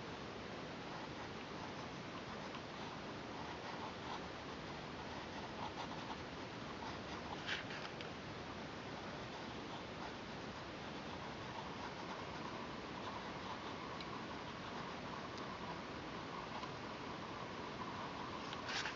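A pencil scratches and scrapes softly on paper.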